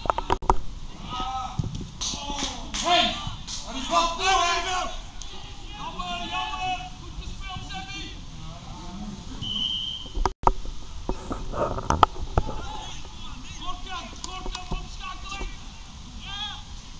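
Teenage boys shout to each other across an open field.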